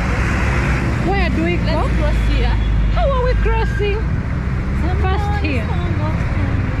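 Adults talk and call out nearby on a busy street.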